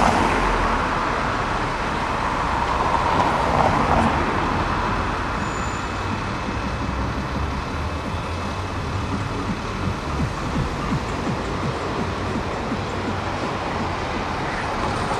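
A bus engine rumbles as a bus drives along the street.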